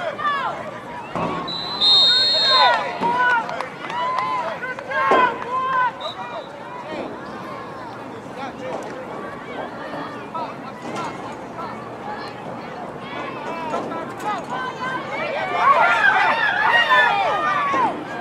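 Spectators shout and cheer outdoors.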